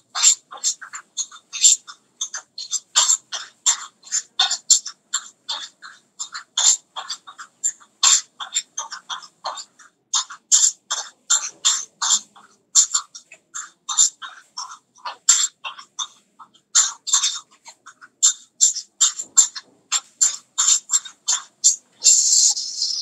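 A man calls out rhythmically over an online call.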